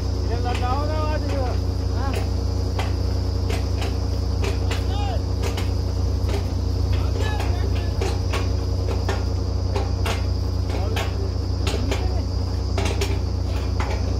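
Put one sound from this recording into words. Men call out to each other over the engine noise.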